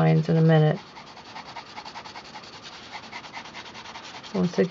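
A pencil scratches rapidly across paper.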